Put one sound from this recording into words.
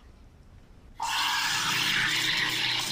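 A coffee machine's steam wand hisses loudly and steadily.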